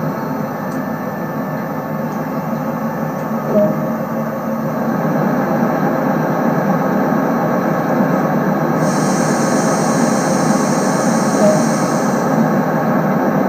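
A train engine hums steadily.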